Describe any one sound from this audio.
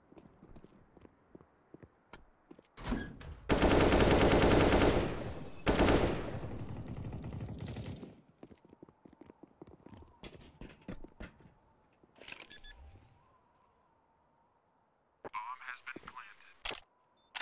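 Footsteps run across a hard floor in a video game.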